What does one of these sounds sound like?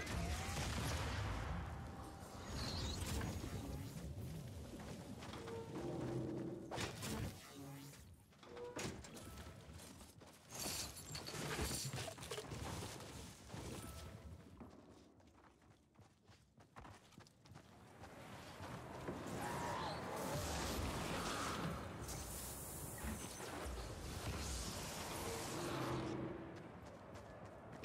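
Footsteps patter quickly on hard floors.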